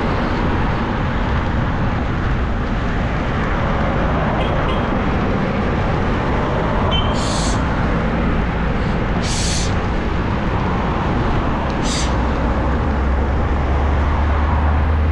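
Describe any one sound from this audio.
Wind rushes steadily past a moving rider.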